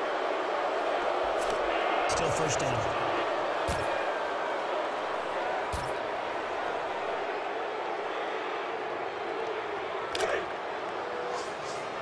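A large crowd roars steadily in a big open stadium.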